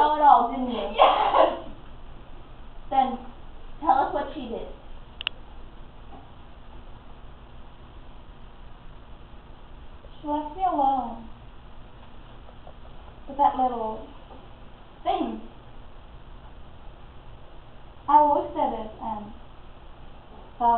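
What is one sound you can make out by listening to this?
A young woman speaks nearby in short bursts, with pauses between.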